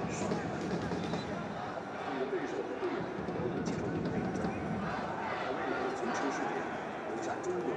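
Young men shout and cheer with excitement.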